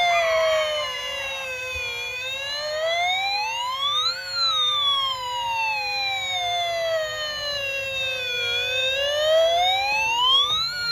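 A toy fire truck's electronic siren wails loudly, rising and falling slowly.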